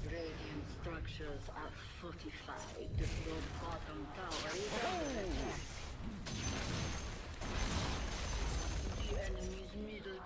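Fantasy battle sounds of spells and clashing weapons play from a game.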